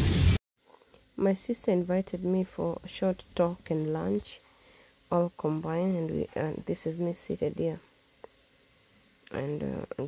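A woman talks calmly close to the microphone in a quiet room.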